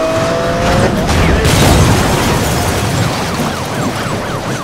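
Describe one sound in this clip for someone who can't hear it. Glass and debris shatter and scatter.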